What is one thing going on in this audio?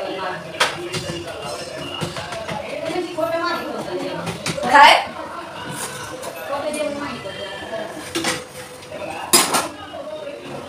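Metal utensils clink and scrape against a pan.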